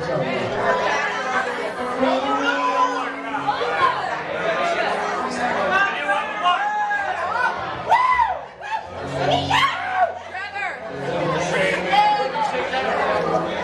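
A live band plays loud electric guitars with bending notes.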